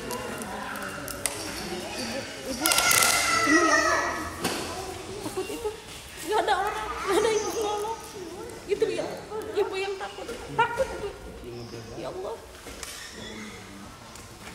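A middle-aged woman speaks emotionally nearby, her voice breaking as she cries.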